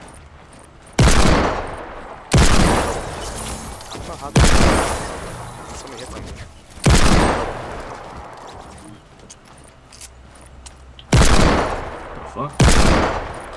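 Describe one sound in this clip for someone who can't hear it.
A rifle fires loud single shots that ring out and fade.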